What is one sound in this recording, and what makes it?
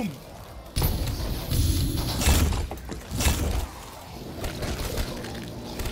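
An electric weapon crackles and zaps.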